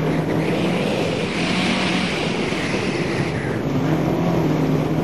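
A car engine revs loudly and changes pitch as the car drives fast.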